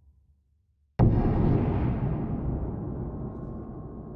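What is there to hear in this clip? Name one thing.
A low rumbling whoosh starts suddenly and goes on.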